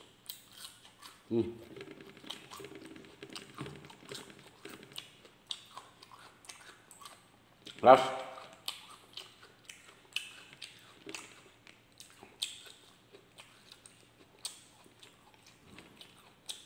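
A man chews food noisily, smacking his lips.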